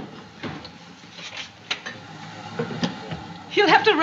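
A door opens and closes.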